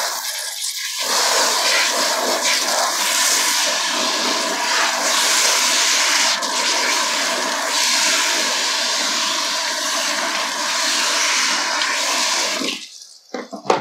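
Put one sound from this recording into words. A handheld shower spray hisses onto hair.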